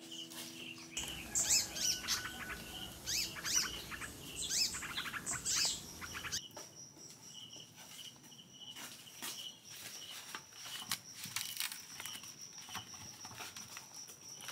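Banana leaves rustle and crinkle as they are handled and pressed into a wok.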